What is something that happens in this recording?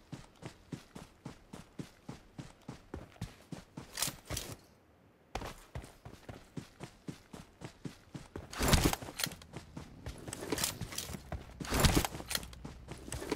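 Footsteps rustle through dry grass at a quick, steady pace.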